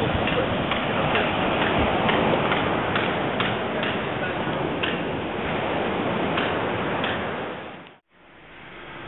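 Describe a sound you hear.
Wind gusts loudly outdoors.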